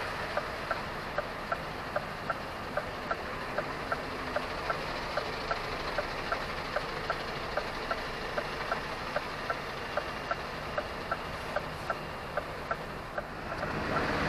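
A turn signal clicks at a steady pace.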